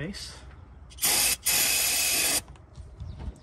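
An aerosol can sprays with a sharp hiss.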